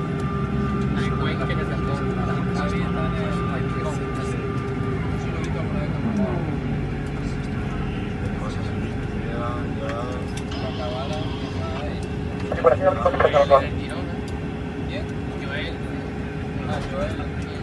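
Many men chatter and talk nearby.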